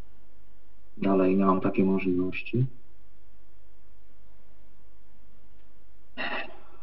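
A man speaks briefly through an online call over a loudspeaker.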